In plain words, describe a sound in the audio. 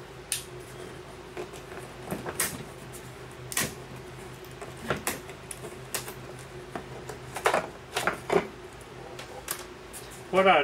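Wooden frames knock and clatter against each other in a cardboard box.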